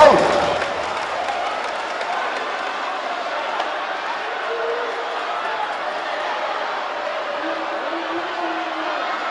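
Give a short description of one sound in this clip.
A large crowd cheers and chants loudly in an echoing arena.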